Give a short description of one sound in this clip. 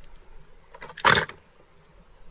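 Small toy cars clatter against each other in a plastic tub.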